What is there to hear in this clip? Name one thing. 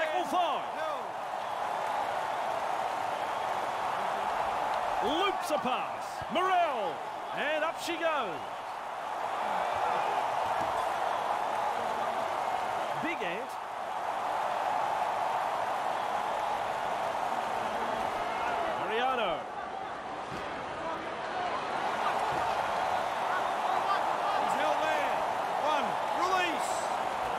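A large crowd roars and cheers steadily in a stadium.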